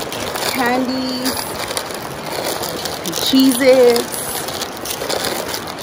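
A plastic snack wrapper crinkles.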